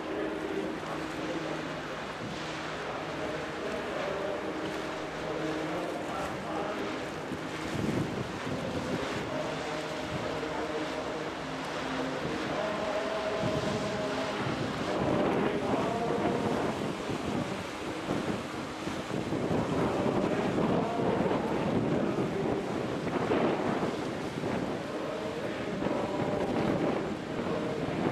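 A ship's engine drones steadily nearby.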